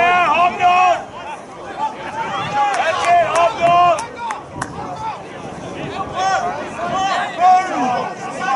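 Young men shout loudly to each other across an open field.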